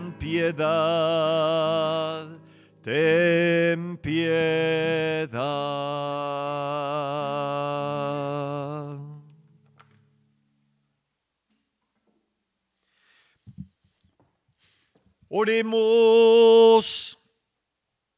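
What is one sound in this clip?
A man sings into a microphone with a sustained, wavering voice.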